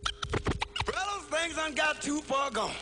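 A man speaks loudly and with animation.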